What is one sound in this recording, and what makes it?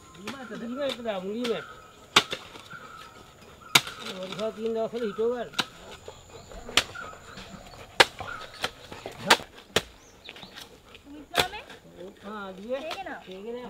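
Hoes strike and chop into soil.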